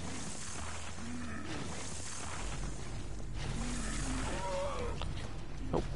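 A creature groans low and menacingly.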